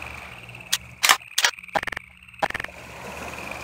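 A pistol is reloaded with sharp metallic clicks.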